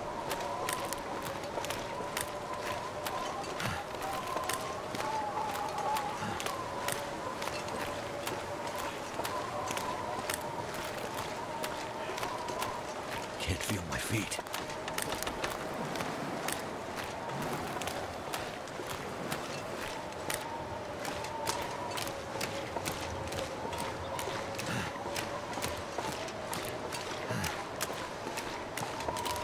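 Footsteps crunch steadily on icy snow.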